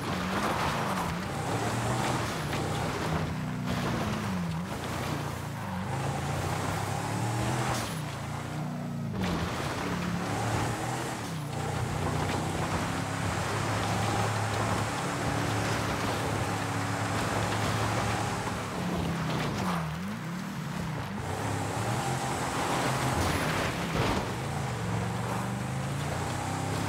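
A car engine revs up and down steadily.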